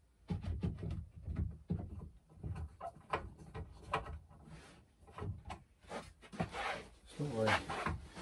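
Wooden boards knock and clatter close by.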